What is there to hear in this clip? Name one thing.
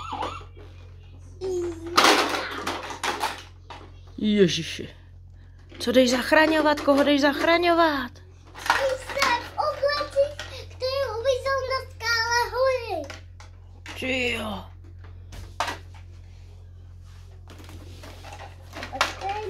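Plastic toy parts clatter and click.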